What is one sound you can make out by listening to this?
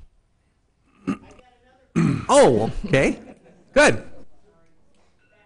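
A man speaks loudly and clearly through a microphone.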